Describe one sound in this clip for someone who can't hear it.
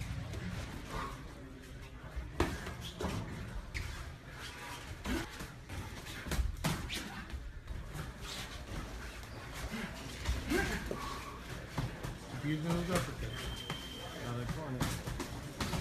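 Sneakers shuffle and squeak on a canvas floor.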